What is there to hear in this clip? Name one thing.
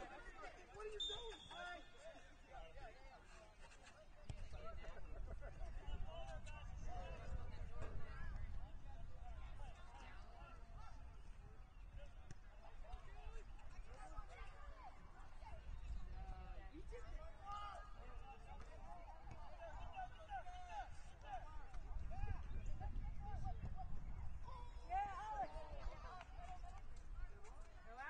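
Adult spectators nearby talk and call out outdoors.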